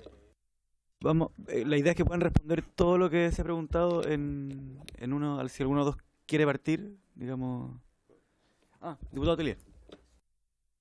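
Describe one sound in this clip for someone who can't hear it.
A young man speaks with animation into a microphone.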